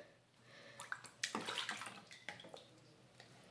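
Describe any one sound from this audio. Water splashes and drips as a bottle is lifted out of a filled sink.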